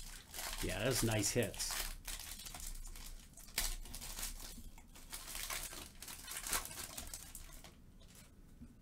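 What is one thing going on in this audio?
Foil wrapping crinkles and tears as a pack is opened.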